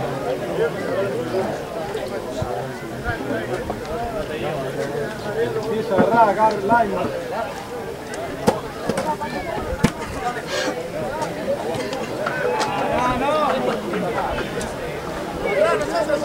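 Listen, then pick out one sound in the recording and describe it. Rugby players shout and call to each other outdoors.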